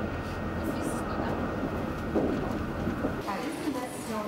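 Tyres roar on the road from inside a moving bus.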